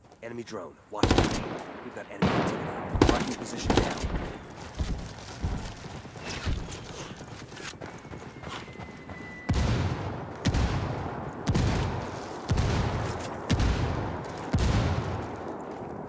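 Gunshots crack loudly and echo off rock walls.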